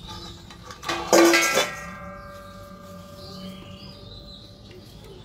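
A metal bowl clangs down onto a hard floor and rings.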